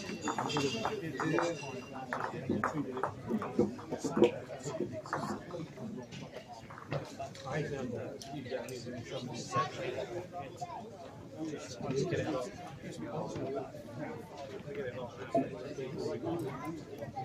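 A crowd of men and women chatter in a large echoing hall.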